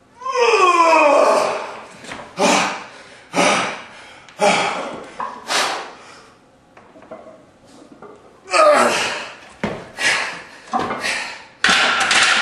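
A man grunts and groans loudly with effort, close by.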